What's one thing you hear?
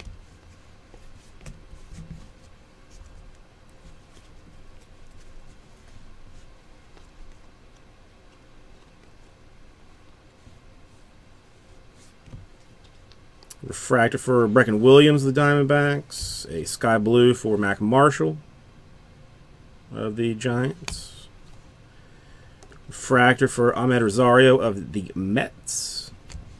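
Trading cards rustle and click as they are shuffled and flipped by hand.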